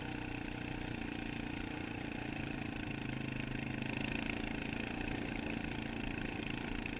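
An ATV engine drones steadily.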